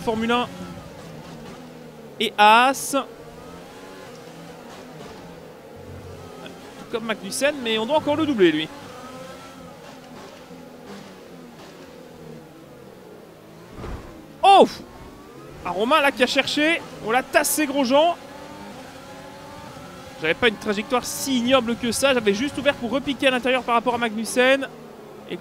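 A racing car's engine whines at high speed.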